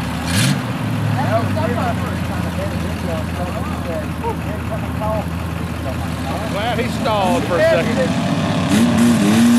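Truck engines rumble at low speed.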